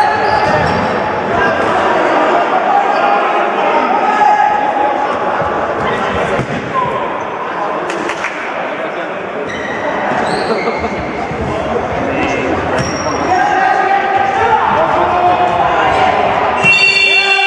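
A ball thuds on the floor and is kicked.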